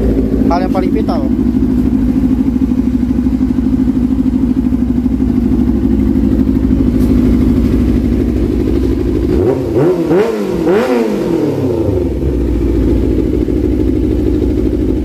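A motorcycle engine idles with a steady, throaty rumble.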